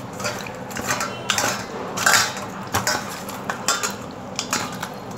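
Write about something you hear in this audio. A hand squelches and splashes while mixing wet batter in a metal bowl.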